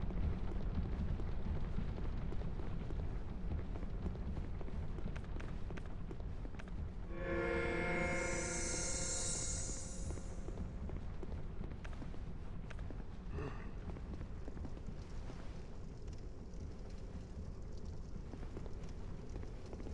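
Heavy armoured footsteps thud on wooden boards.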